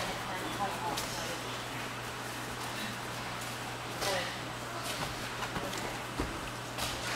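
A foot thuds against a kick pad.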